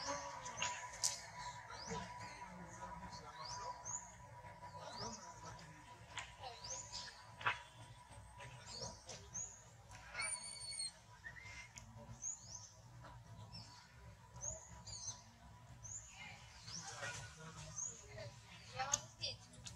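Young monkeys squeak and chirp close by.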